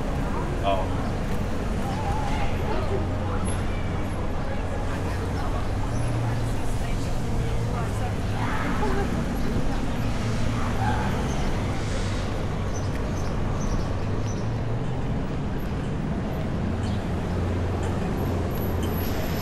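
Footsteps tap steadily on a paved sidewalk.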